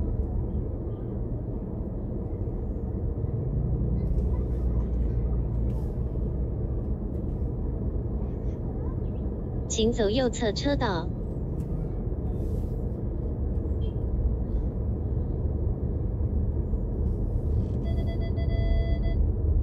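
A car engine idles with a low steady rumble, heard from inside the car.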